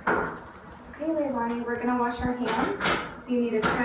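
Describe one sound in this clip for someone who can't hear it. A young woman speaks calmly nearby.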